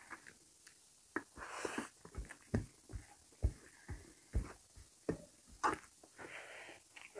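A man chews food loudly.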